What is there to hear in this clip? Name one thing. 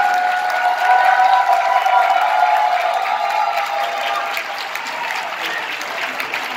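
A large crowd sings together in a big echoing hall.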